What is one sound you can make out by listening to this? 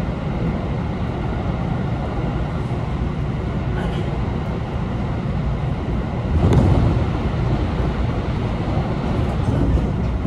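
An electric commuter train rumbles along the rails, heard from inside a carriage.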